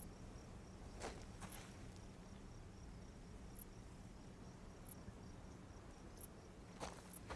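Hands scrape and grip on rough stone during a climb.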